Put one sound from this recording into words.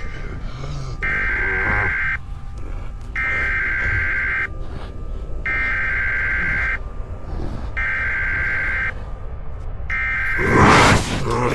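A television gives out a repeating high electronic beep.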